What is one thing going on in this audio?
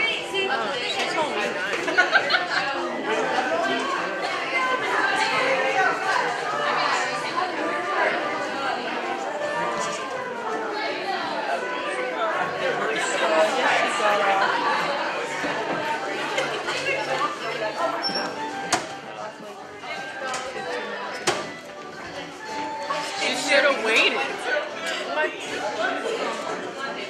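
Many men and women chatter at once in a large echoing hall.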